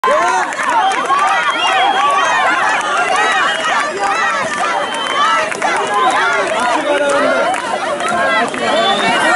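A crowd of children shouts and cheers loudly outdoors.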